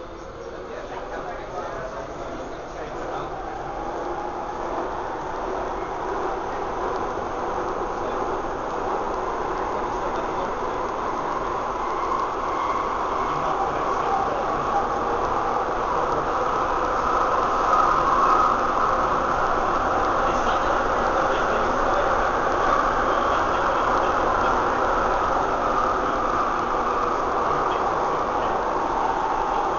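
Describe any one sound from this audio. A train rumbles and whines along the track, growing louder as it speeds up.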